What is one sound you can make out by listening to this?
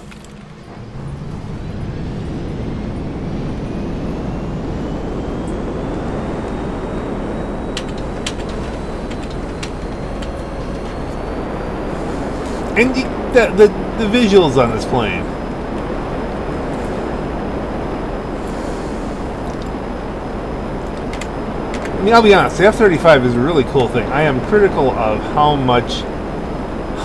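A jet engine roars steadily and rises in pitch as the aircraft takes off.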